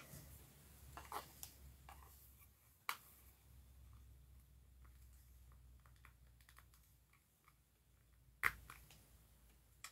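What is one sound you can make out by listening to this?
Small plastic toy parts click and tap together.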